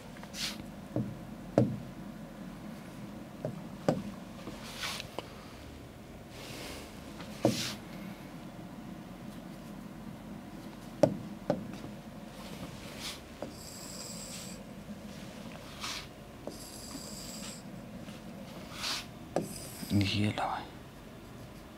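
A pen taps and squeaks against a board.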